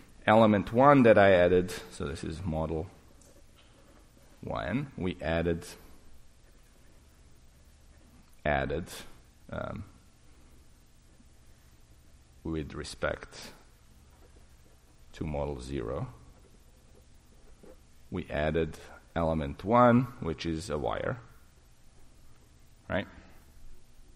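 A man lectures calmly into a microphone, in bursts with pauses.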